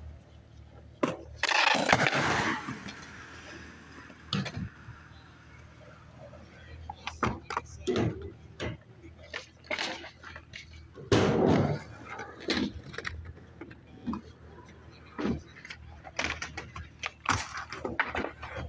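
A skateboard clacks and snaps against the ground.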